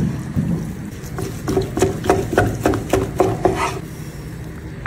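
A knife slices through crusty meat with rapid crunching strokes.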